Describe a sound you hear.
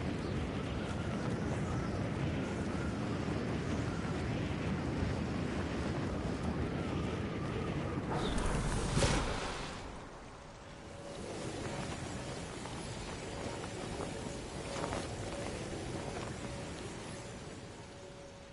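Air rushes loudly past in a steady roar, then eases and softens.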